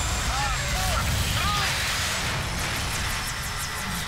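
A helicopter's rotor whirs as it crashes.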